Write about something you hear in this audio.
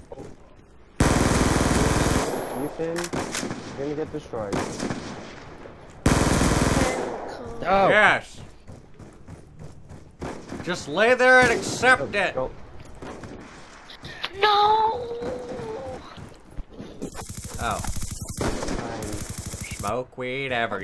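Gunfire bursts loudly in rapid bursts.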